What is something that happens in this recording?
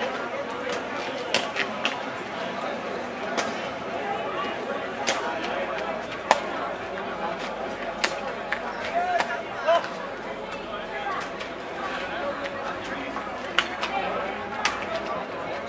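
Wooden blocks clatter as they are dropped into a basket.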